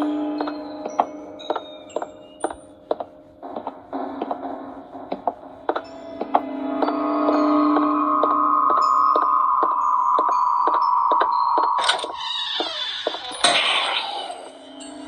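Footsteps thud steadily in a tablet game.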